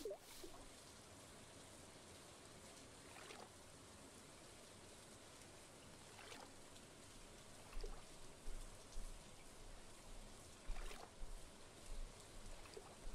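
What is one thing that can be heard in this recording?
Rain falls steadily with a soft hiss.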